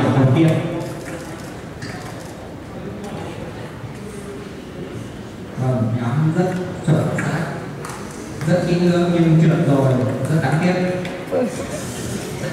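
A young man talks loudly nearby.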